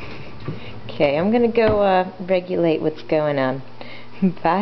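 A baby babbles and squeals up close.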